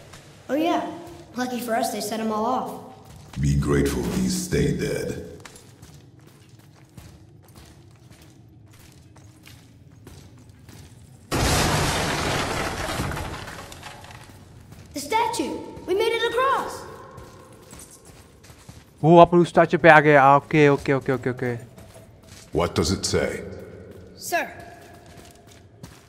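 A man speaks in a deep, gruff voice.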